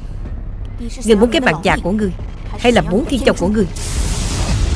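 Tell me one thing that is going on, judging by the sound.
A young woman speaks tensely and closely.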